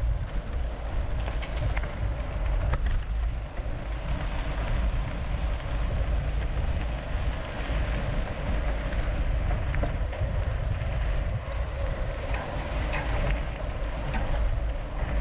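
Wind rumbles loudly across a microphone outdoors.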